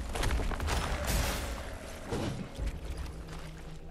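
Footsteps slosh through shallow water.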